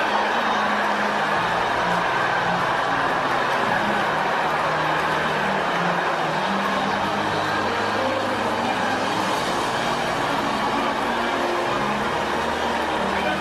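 A large crowd of men and women sings and cries out together loudly in a large echoing hall.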